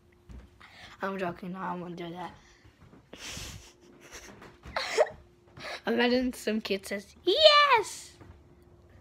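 A young boy laughs loudly close by.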